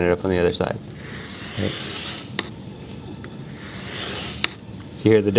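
A felt marker squeaks and scratches across a board.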